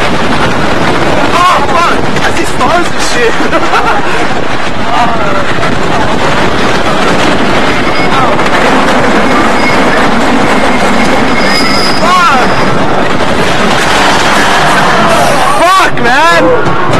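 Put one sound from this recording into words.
A roller coaster rumbles and clatters loudly along its track.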